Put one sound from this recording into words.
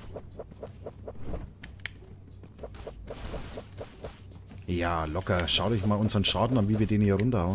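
A blade swooshes through the air.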